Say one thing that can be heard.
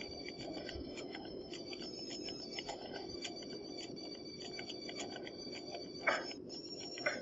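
Dishes clink on a metal trolley.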